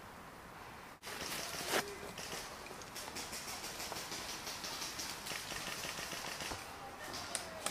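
Dry leaves crunch and rustle underfoot as someone walks quickly.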